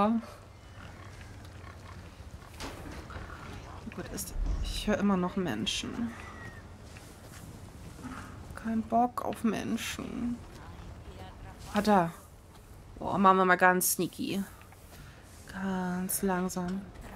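A young woman talks with animation into a microphone, close by.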